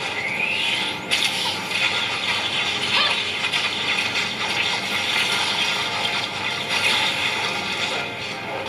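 A mobile game plays busy battle sound effects through a small phone speaker.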